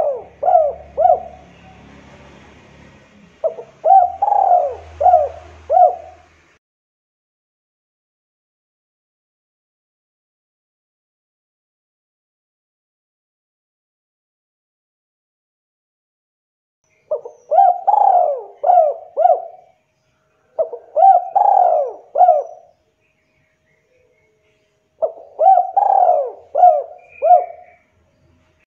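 A spotted dove coos in short phrases.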